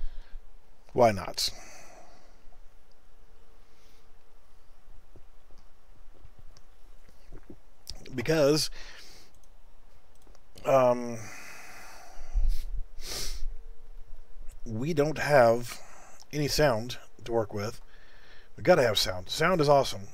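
A man speaks in short bursts close to a microphone.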